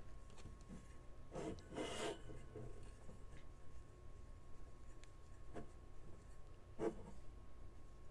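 A cloth rubs against metal.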